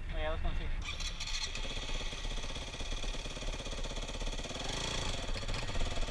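A dirt bike engine revs loudly up close.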